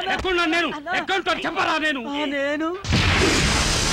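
A man shouts and wails in distress, close by.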